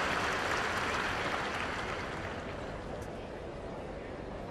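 A large crowd applauds in a big arena, then quietens.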